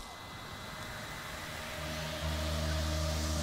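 A low eerie drone swells and grows louder.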